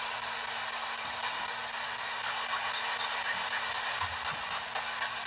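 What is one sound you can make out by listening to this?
A small radio hisses with steady static as it sweeps through stations.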